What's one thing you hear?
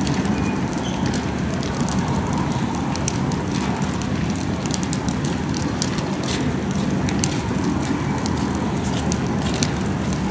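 A fire crackles and roars nearby.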